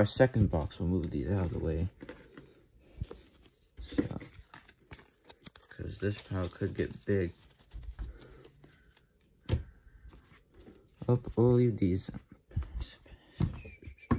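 Trading cards rustle and flick as hands sort through them.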